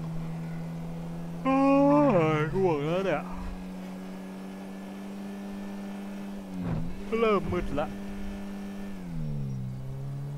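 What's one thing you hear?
A car engine hums steadily at speed, its pitch dropping near the end.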